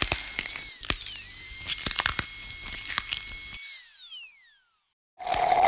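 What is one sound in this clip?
A dental drill whines at high pitch and winds down.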